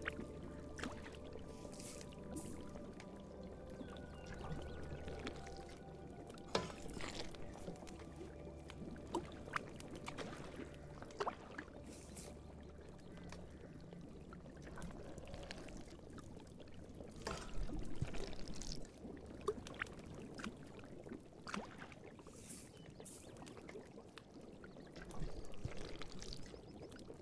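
Liquid bubbles softly in a pot.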